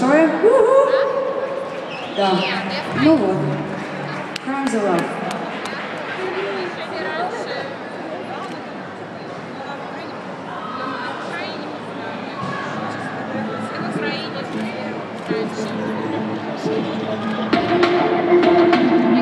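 A band plays amplified music in a large hall.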